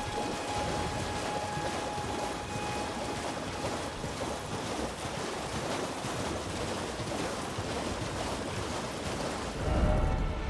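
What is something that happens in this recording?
Hooves splash through shallow water at a gallop.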